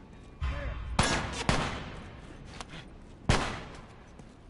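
A pistol fires loudly with sharp bangs.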